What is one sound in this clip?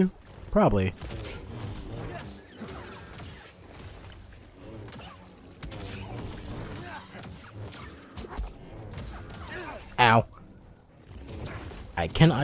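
A humming energy blade swings and clashes with sharp crackles.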